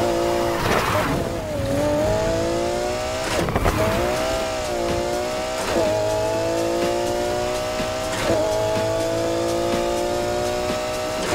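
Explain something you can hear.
A racing car engine roars at high revs, its pitch rising and dropping with each gear change.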